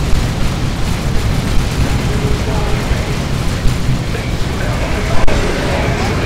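Flamethrowers roar.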